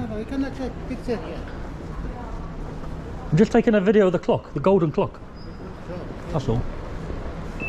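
A middle-aged man answers calmly from a short distance.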